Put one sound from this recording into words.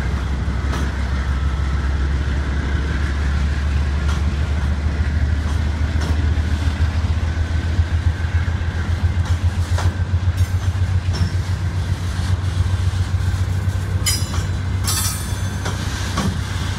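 A freight train rumbles past close by with a deep, steady roar.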